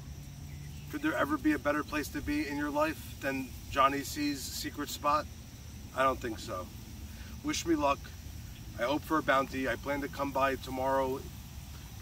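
A middle-aged man talks with animation close by, outdoors.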